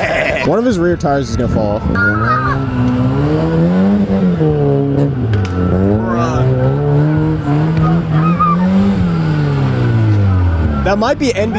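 A car engine revs hard, rising and falling in pitch.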